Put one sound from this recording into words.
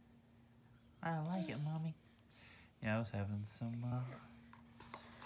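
A woman talks softly and playfully up close.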